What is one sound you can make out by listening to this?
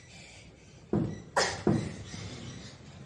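A child's feet thump softly on sofa cushions.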